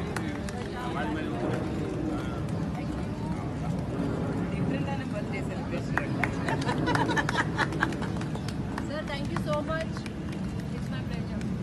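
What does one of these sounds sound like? A small group of people chatters and laughs nearby.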